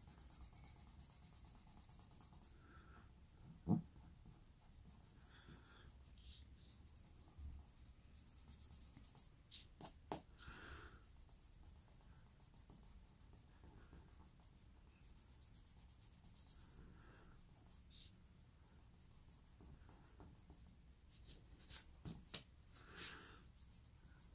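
A hand rubs and brushes softly across paper.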